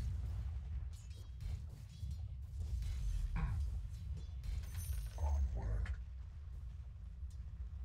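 Game weapons clash and strike in a fight.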